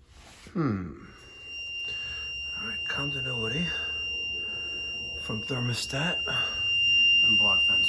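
A multimeter gives a steady, high continuous beep.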